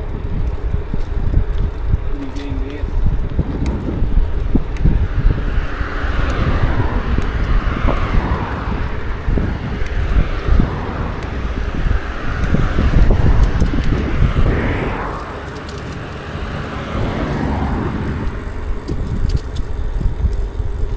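Wind rumbles loudly past the rider, outdoors.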